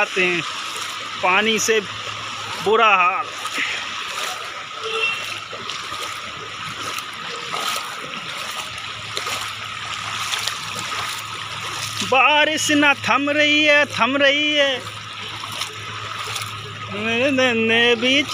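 Feet wade and slosh through shallow water.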